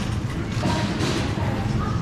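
A shopping trolley rattles as it rolls over a tiled floor.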